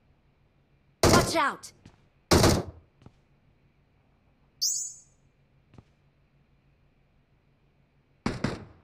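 A rifle fires short, loud bursts.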